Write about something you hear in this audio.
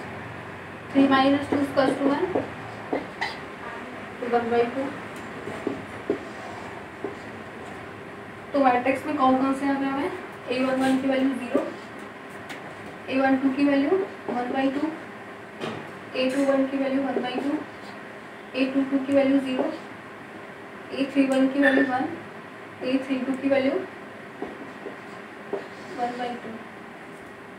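A young woman speaks calmly and clearly, pausing between phrases.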